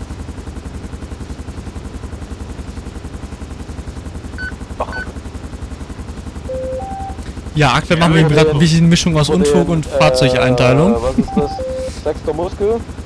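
A helicopter's rotor chops steadily nearby.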